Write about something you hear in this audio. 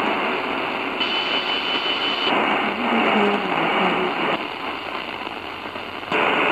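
Radio static shifts and whistles as the tuning changes station.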